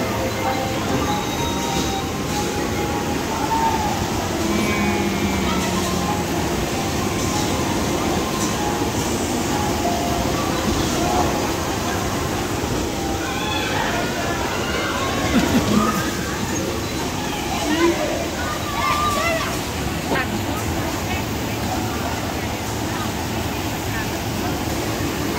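Bumper cars hum and rumble around a large echoing hall.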